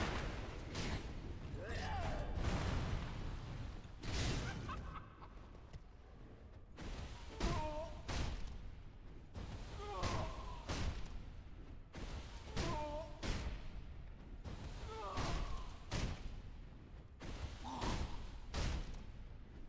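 Heavy sword swings whoosh through the air.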